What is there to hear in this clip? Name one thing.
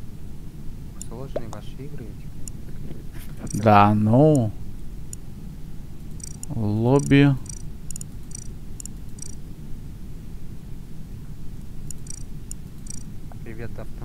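Short, soft menu clicks tick now and then.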